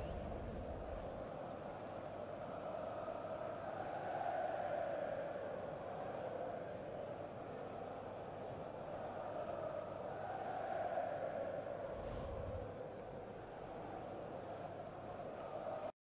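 A large stadium crowd roars and chants steadily, swelling and easing.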